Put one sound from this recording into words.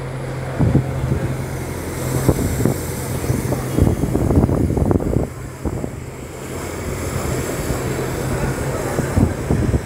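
A second bus drives past close by with a low engine hum.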